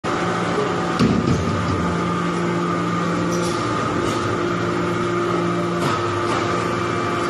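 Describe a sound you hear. A hydraulic press hums and drones steadily in a large echoing hall.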